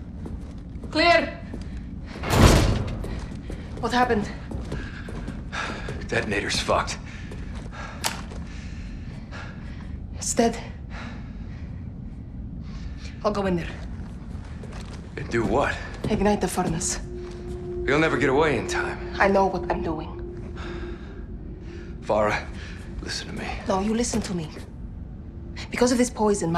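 A young woman speaks quietly and tensely nearby.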